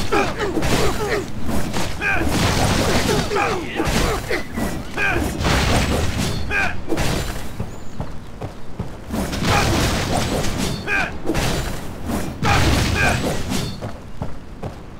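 Swords clash and blows land in rapid bursts.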